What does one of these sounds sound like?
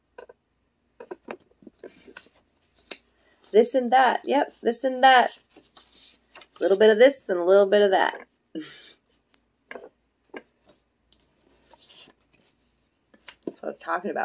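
Paper rustles as cards are handled.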